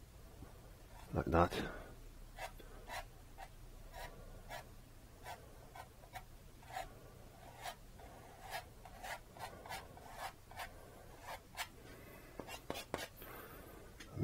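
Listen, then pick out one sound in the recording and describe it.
A palette knife taps and scrapes lightly on paper.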